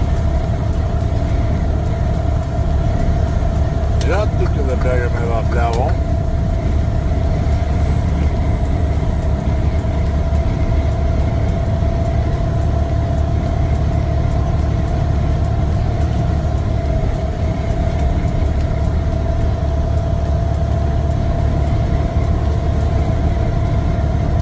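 A vehicle engine hums steadily while driving on a highway.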